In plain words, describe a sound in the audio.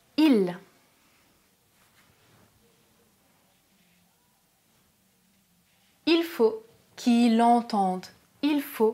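A young woman speaks clearly and expressively into a close microphone.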